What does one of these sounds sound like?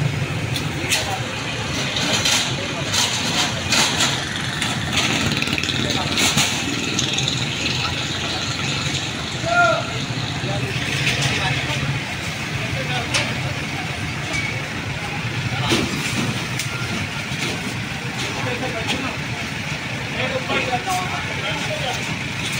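Men shout and call out to each other outdoors at night.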